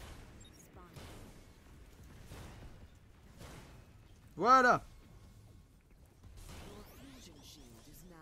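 Energy weapons fire in short whooshing bursts.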